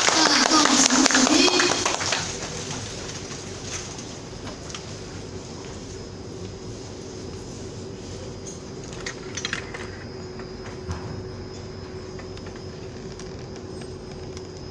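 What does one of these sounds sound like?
Ceiling fans hum steadily.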